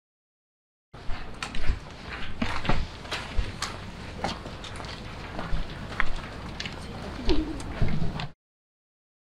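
Footsteps tap on pavement outdoors.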